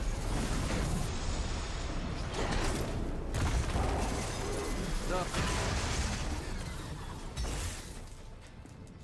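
Fire crackles and roars during a fight.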